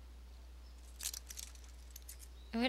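A handcuff lock clicks open.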